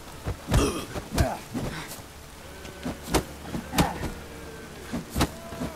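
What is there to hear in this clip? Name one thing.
Footsteps thud heavily on hard ground at a steady pace.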